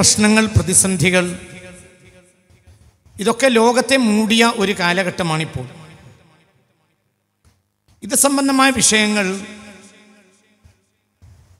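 An elderly man recites in long, drawn-out phrases through a microphone, with pauses between them.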